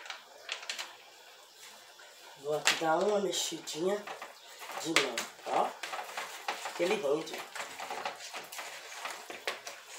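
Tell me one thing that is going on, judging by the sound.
Meat squelches as hands knead it in a bowl.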